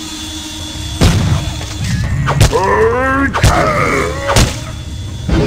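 A heavy metal wrench strikes a body with sharp thuds.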